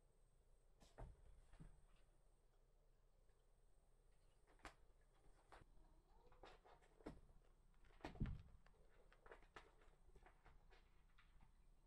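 A cat shifts about on a scratching mat with soft rustles and knocks.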